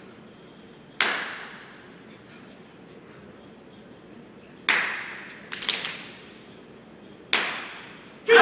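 Sharp stamps and uniform snaps crack and echo through a large hall.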